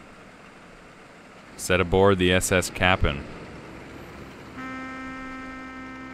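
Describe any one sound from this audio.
Rain falls steadily on water.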